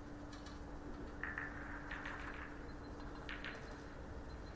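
Snooker balls click softly as they are placed on the table.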